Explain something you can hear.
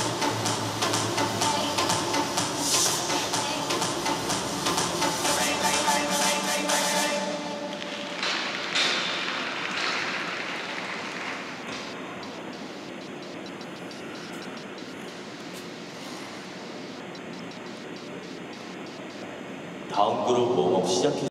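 Ice skate blades scrape and hiss across the ice.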